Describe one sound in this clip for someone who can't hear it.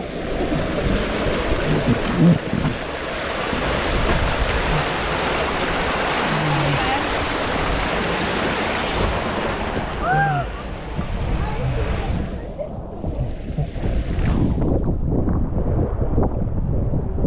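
Water rushes and splashes loudly around a tube on a slide.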